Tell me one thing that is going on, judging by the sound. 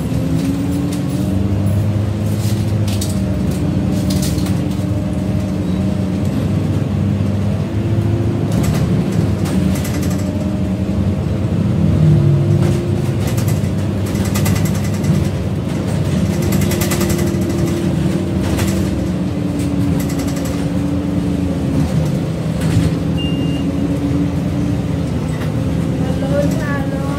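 A bus engine hums and drones steadily from inside the cabin.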